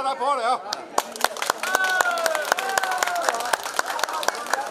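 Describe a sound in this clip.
A group of people claps hands in a quick rhythm.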